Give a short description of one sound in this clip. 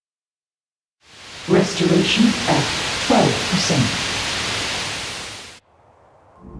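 Loud static hisses steadily and then cuts off.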